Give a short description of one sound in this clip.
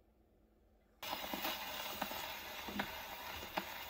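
An old gramophone record plays music loudly with crackle and hiss.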